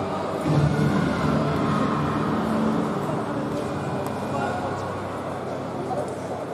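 Voices murmur and echo in a large hall.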